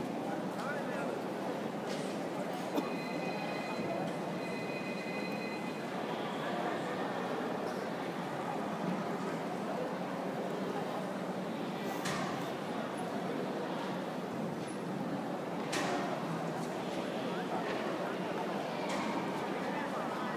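A crowd murmurs and chatters steadily in a large echoing hall.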